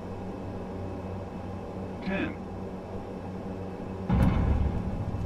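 Turboprop engines hum as an airliner rolls along a runway.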